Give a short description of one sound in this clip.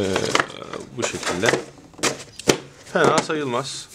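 Cardboard packaging rustles and scrapes as hands handle it.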